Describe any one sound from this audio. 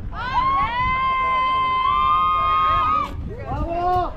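A young woman yells a long, drawn-out cheer close by.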